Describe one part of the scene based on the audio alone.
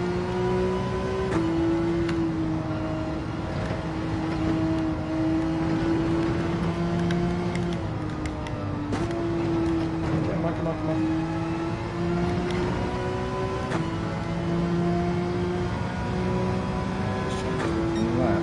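A racing car engine roars steadily, its pitch shifting as gears change.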